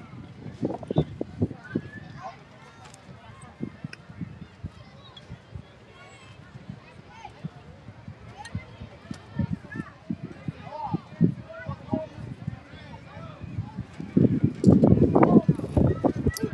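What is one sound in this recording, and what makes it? Young players and adults call out across an open field.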